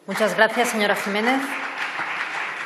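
A young woman speaks into a microphone in a large echoing hall.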